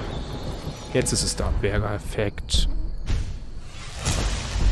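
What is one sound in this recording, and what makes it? A game menu chimes and whooshes.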